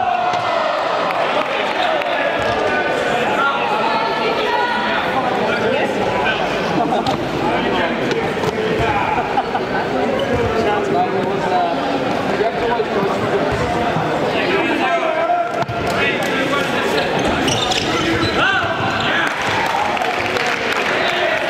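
Many young people chatter and shout nearby, echoing in a large hall.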